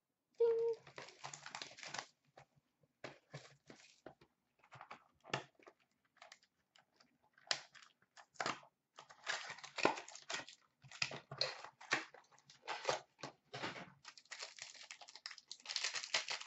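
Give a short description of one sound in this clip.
Plastic card packs rustle and crinkle in someone's hands, close by.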